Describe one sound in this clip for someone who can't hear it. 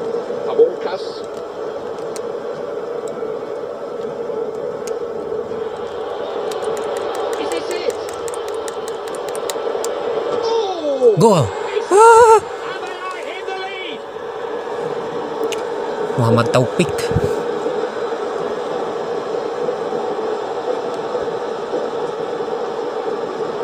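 A stadium crowd murmurs steadily through television speakers.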